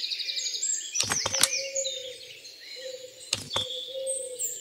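Stone tiles slide and thud into place.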